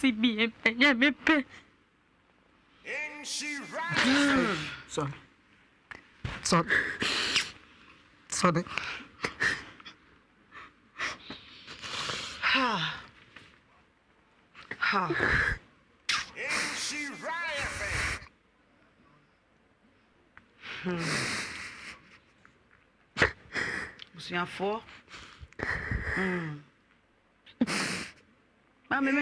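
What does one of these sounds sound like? A woman speaks with emotion into a close microphone, pausing often.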